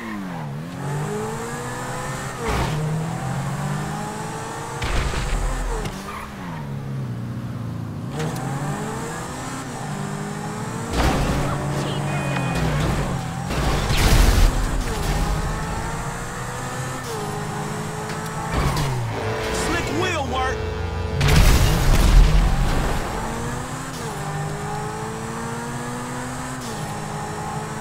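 A sports car engine roars and revs up and down through gear changes.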